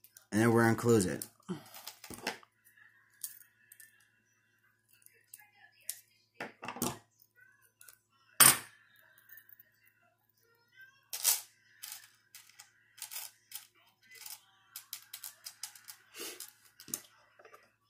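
Small metal rings clink and jingle as they are handled.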